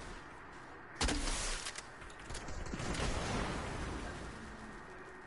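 A firework bursts with a loud bang and crackles.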